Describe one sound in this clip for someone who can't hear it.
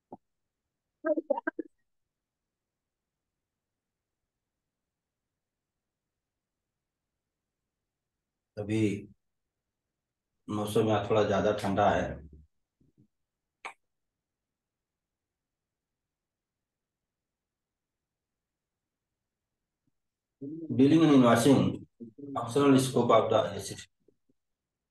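A young man speaks calmly over an online call, in short bursts with pauses.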